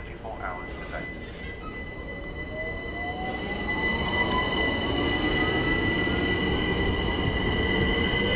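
Train wheels rumble and clatter on the rails, growing louder.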